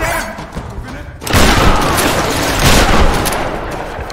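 Heavy blows and thuds land in a close struggle.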